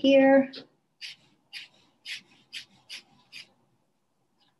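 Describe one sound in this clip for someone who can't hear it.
A felt marker squeaks across paper in short, quick strokes.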